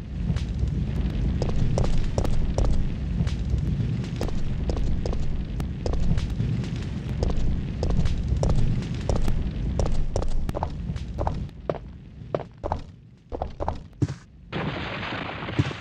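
Footsteps fall on pavement.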